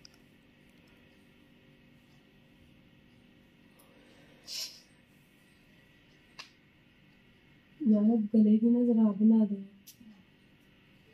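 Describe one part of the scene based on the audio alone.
Hands softly rustle hair while braiding it.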